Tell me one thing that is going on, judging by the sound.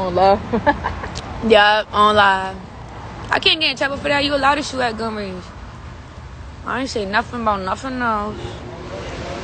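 A young woman talks casually and close up into a phone microphone.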